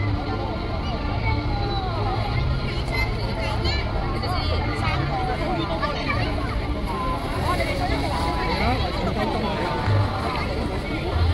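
Children shout and squeal with excitement.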